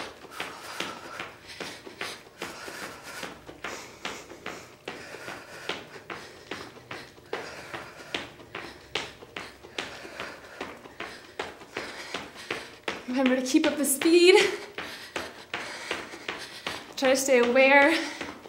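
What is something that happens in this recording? A woman's feet patter quickly on a hard floor as she jogs in place.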